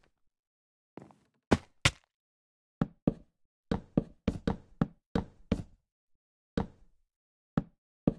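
Wooden blocks knock into place one after another in quick, uneven bursts.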